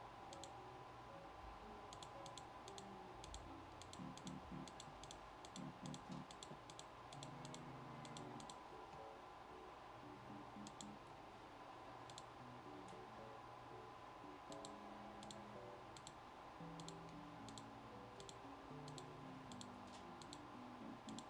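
Short, sharp clicks sound again and again at an uneven pace.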